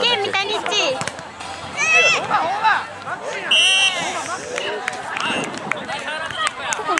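A crowd of young men and women chatter and shout outdoors.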